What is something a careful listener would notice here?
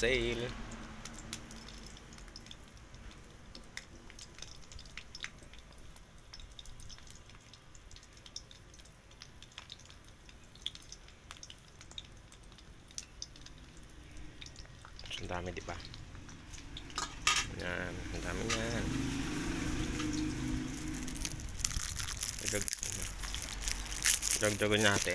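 Small fish sizzle as they fry in oil in a wok.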